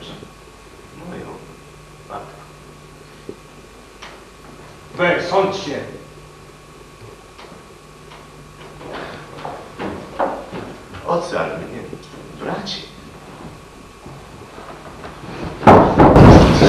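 A man speaks slowly in a large hall.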